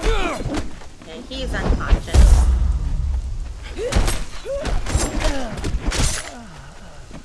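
Blades clash and strike loudly in a close fight.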